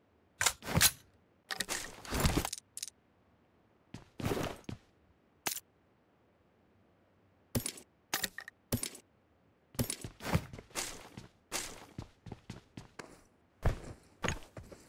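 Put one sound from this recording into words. Short rustling clicks of gear being picked up sound in quick bursts.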